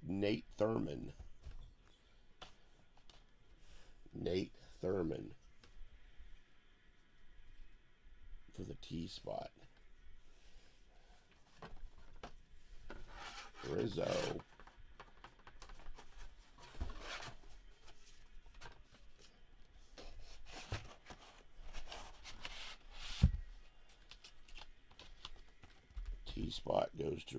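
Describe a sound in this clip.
Hard plastic cases click and knock as they are handled.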